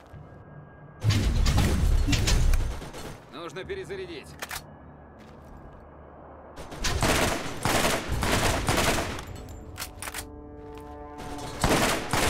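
Gunshots fire in loud bursts from a video game.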